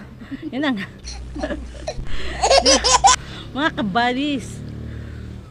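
Two women laugh close by.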